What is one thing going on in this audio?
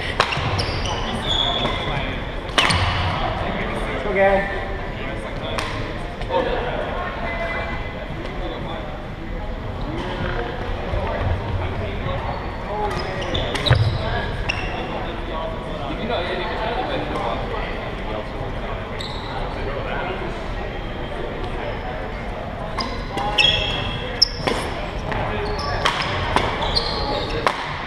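Rackets hit a shuttlecock with sharp pops in a large echoing hall.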